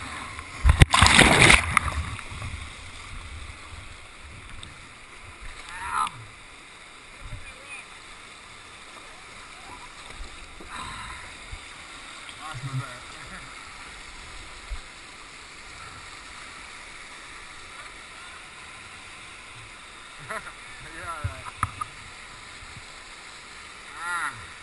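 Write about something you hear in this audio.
Rushing whitewater roars steadily close by.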